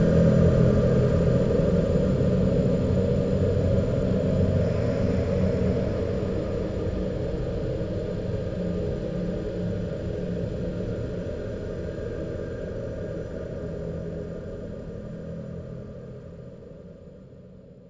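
A dance band plays a muffled, crackly old tune that slowly fades out.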